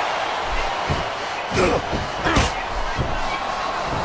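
Blows land with dull thuds.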